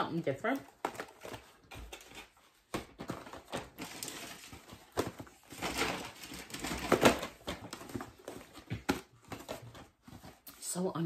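Packaging rustles and crinkles as it is handled.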